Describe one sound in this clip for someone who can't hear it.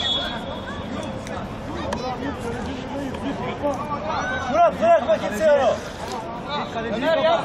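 Young men shout and call to each other from a distance outdoors.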